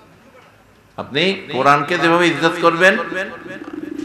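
An elderly man preaches loudly and with fervour through a microphone and loudspeakers.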